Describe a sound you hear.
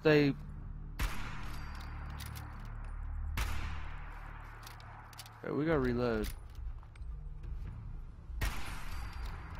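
A rifle fires loud single shots that ring out.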